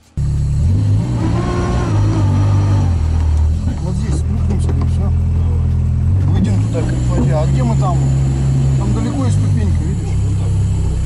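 A middle-aged man talks calmly from close by over the engine.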